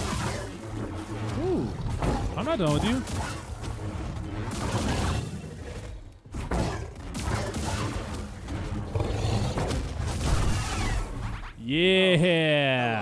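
Laser swords hum and clash with sharp impacts.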